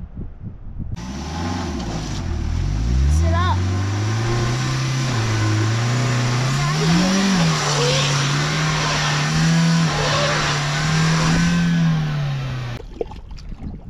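Tyres spin and churn through wet mud.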